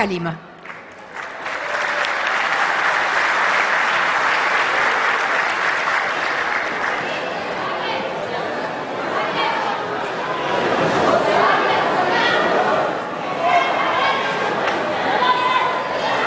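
An audience applauds and cheers in a large echoing hall.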